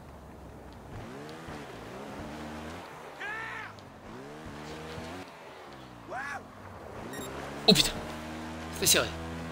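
A motorbike engine revs up and down repeatedly.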